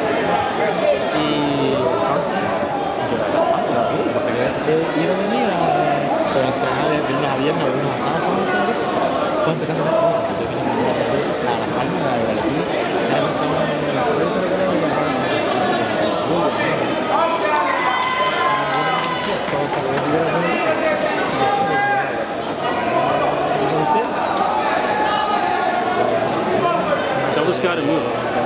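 A crowd of people talk and shout all around in a large echoing hall.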